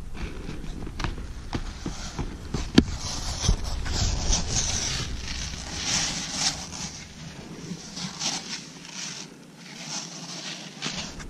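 Skis scrape and crunch on snow close by.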